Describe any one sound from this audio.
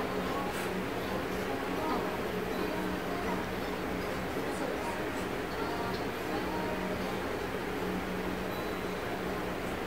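A toddler babbles softly nearby.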